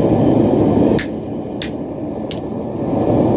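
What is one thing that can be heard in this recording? A wooden mallet strikes metal with sharp knocks.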